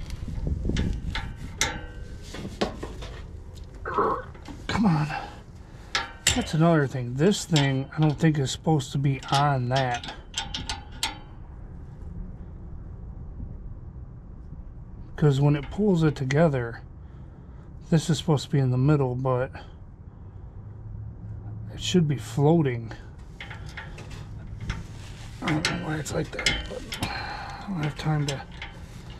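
A wrench clicks and scrapes against metal.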